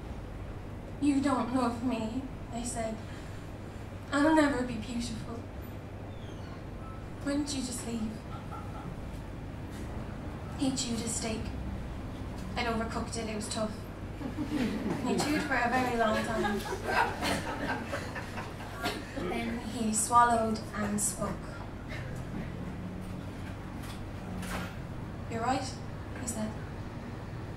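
A young woman sings softly and with feeling into a close microphone.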